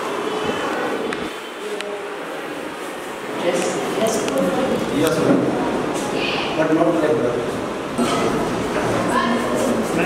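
Several women and men talk at once.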